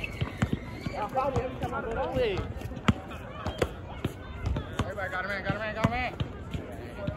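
Young men talk and call out nearby, outdoors.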